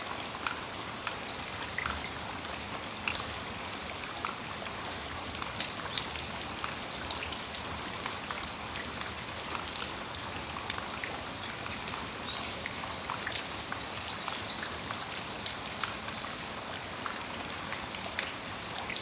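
Raindrops patter and tap on a metal awning.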